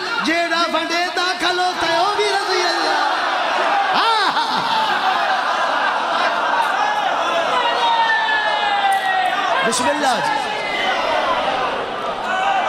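A man chants loudly and passionately into a microphone, heard through loudspeakers with echo.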